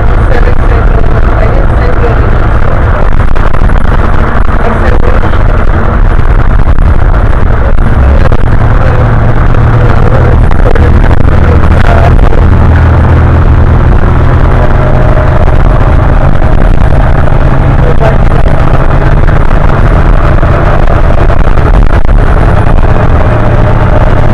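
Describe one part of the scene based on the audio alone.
A bus interior rattles and hums with road noise.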